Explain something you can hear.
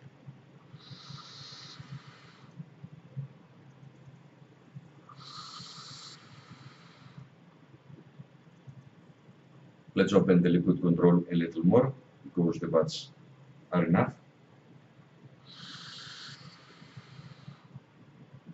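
A vape atomizer coil hisses and crackles as a man draws on it.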